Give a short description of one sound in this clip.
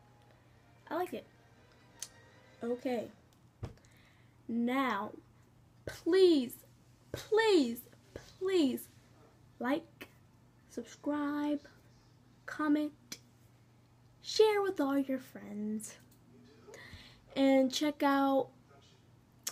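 A young woman speaks expressively close to a microphone, in short phrases with pauses.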